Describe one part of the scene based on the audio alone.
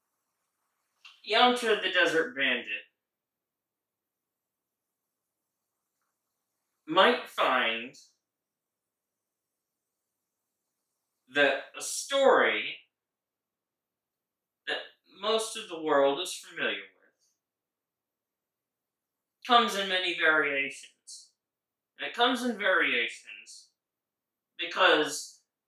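A man speaks animatedly into a microphone in short bursts with pauses.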